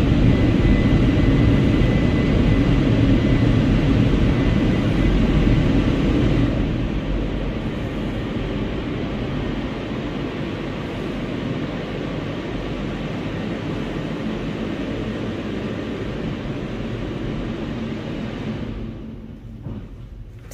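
Car wash machinery rumbles and whirs nearby.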